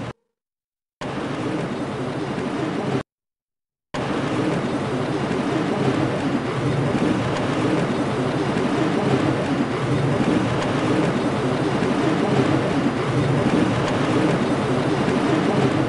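Metal scrapes and grinds steadily along a rail.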